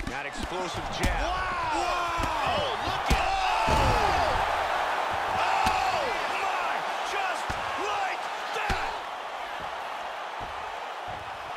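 A crowd roars and cheers.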